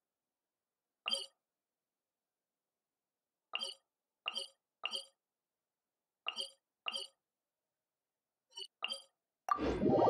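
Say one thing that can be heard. Short game menu chimes click as map points are selected.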